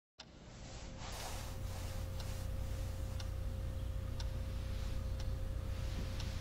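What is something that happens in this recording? A clock ticks steadily.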